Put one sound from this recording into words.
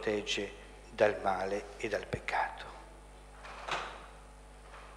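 A middle-aged man speaks solemnly into a microphone in an echoing hall.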